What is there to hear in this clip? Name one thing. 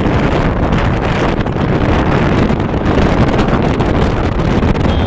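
Wind rushes and buffets loudly past a moving motorbike.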